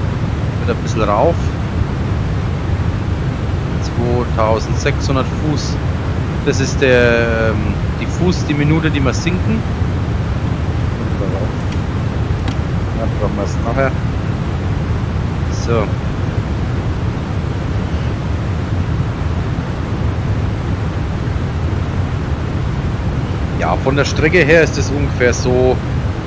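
A jet airliner's engines drone steadily from inside the cockpit.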